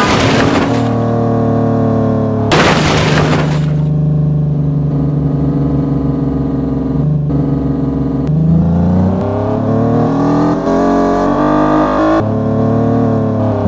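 An engine hums steadily, then revs higher as the vehicle speeds up.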